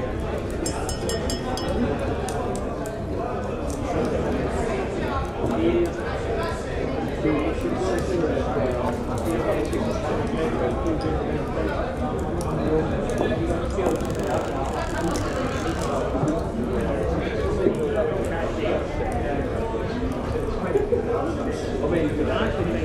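A crowd of men and women chatter and laugh.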